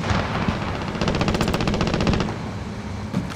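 A handheld scanner gives off a rapid electronic pulsing.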